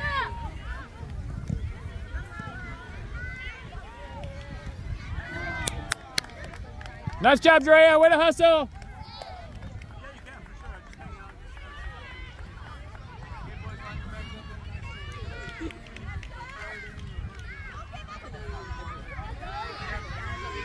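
Children shout and call out across an open field in the distance.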